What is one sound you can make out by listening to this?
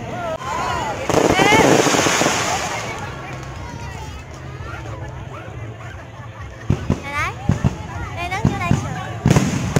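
Fireworks whistle as they shoot up.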